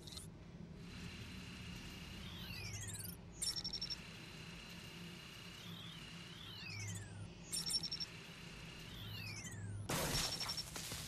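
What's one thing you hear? An electronic device hums and beeps with gliding tones as it is tuned.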